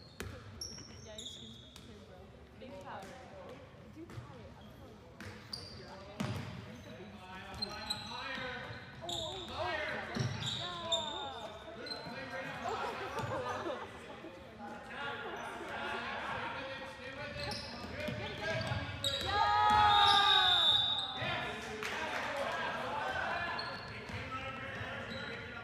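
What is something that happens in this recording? A ball bounces on a wooden floor in a large echoing hall.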